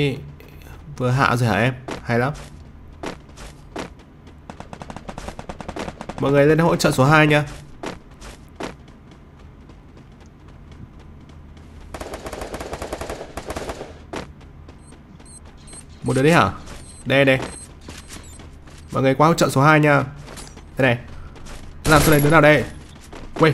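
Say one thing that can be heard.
A young man talks into a microphone with animation, in short bursts.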